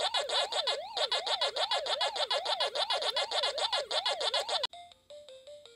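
A small game machine plays a loud, fast warbling electronic siren.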